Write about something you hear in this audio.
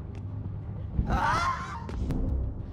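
A blade swooshes through the air.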